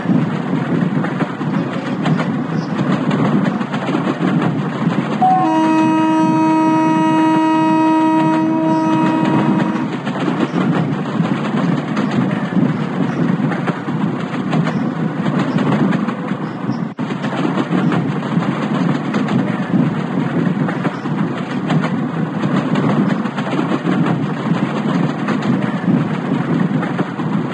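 A train engine rumbles steadily as wheels roll over the rails.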